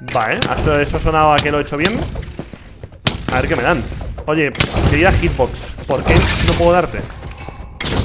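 A sword strikes a skeleton with sharp hits.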